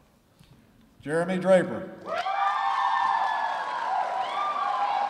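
A man speaks into a microphone over a loudspeaker, announcing in a large echoing hall.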